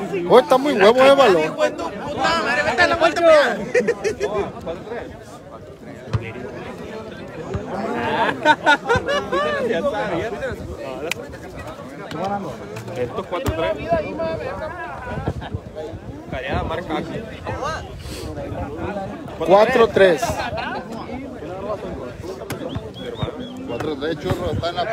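A crowd of men chatter and cheer loudly outdoors.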